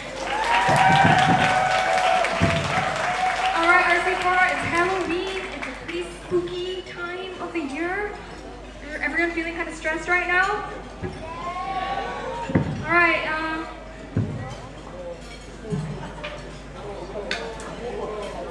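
A young woman sings through loudspeakers in a large hall.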